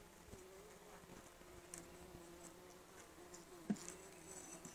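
A tool scrapes and taps against wood.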